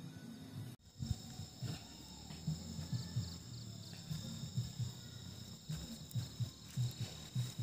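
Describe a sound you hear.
Footsteps thud on grass close by.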